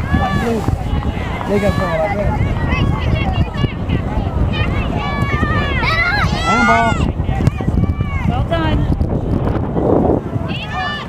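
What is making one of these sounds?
Young girls shout and call out to each other across an open field.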